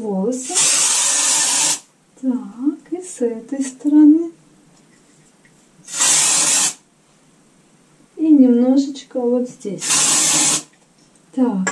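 Hairspray hisses from a can in short bursts.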